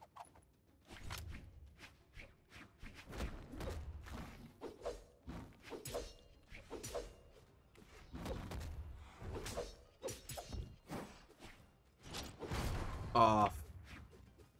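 Blades swish and clash in quick bursts.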